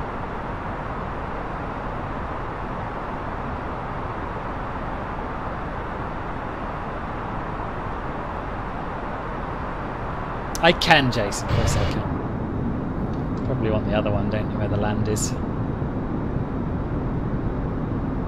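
A jet engine drones steadily in flight.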